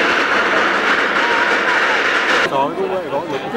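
Steam hisses loudly from a burning boat.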